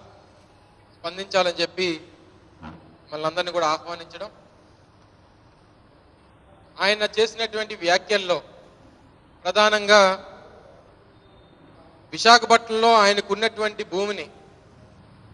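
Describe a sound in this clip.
A young man speaks into a microphone in short, measured bursts with pauses.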